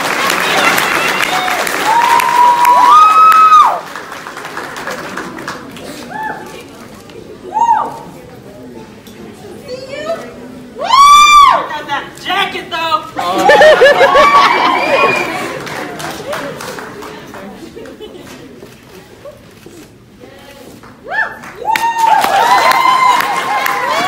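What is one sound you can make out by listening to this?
Young women scream and cheer excitedly in a large echoing hall.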